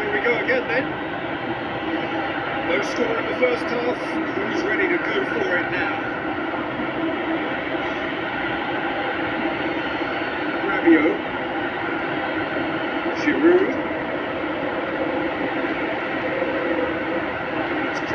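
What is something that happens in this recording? A crowd roars steadily from a football video game on a television.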